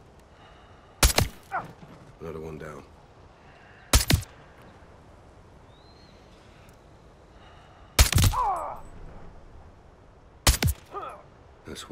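A rifle fires single loud shots that echo away.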